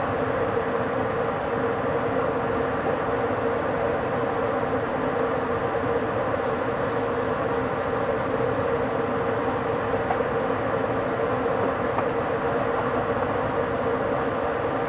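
A train rolls steadily along the rails with a constant rumble.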